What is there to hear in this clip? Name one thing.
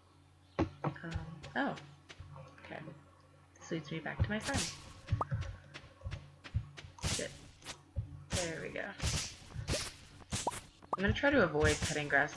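A scythe swishes through tall grass.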